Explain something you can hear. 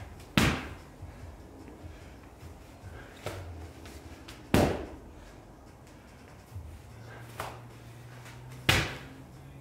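A heavy ball slams onto a rubber floor with a loud thud, echoing briefly.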